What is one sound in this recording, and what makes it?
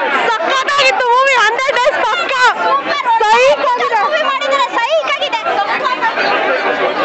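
A young woman speaks excitedly up close.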